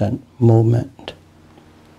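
An elderly man speaks calmly and close to a microphone.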